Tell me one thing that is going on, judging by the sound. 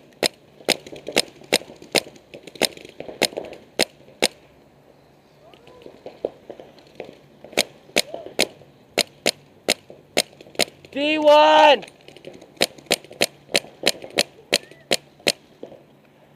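A paintball marker fires in quick, sharp pops close by.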